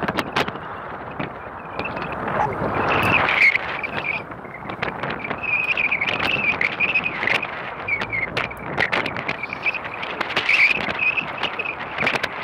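A boat engine hums nearby.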